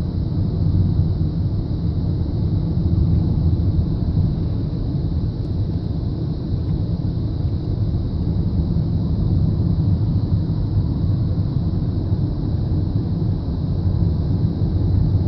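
Tyres rumble on a paved road.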